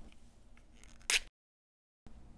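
A plastic compact case snaps open with a click.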